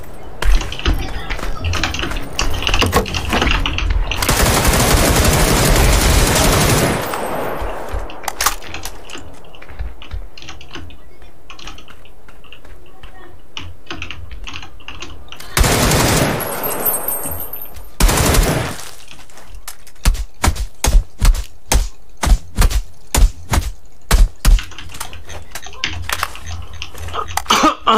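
Footsteps tread steadily at a crouching pace.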